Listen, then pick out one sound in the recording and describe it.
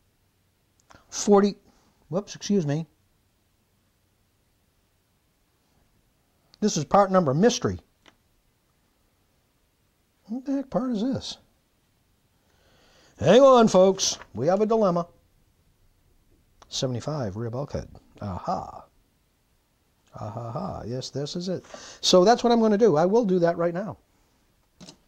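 An older man talks calmly into a close microphone, in short bursts with pauses.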